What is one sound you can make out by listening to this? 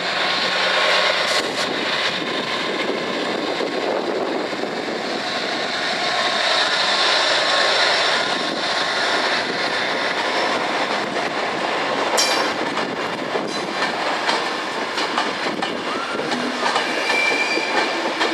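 A train rumbles slowly past on the tracks.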